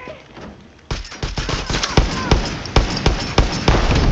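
Rifle shots crack loudly in quick succession.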